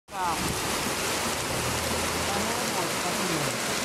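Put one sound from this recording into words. Water gushes and splashes loudly from a drain outdoors.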